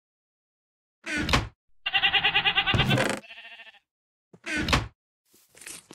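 A wooden chest creaks shut and open.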